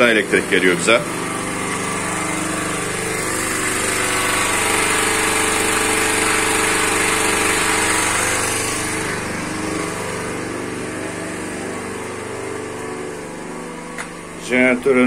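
A petrol generator engine runs with a steady hum.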